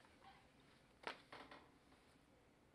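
A sheet of paper slides onto a table.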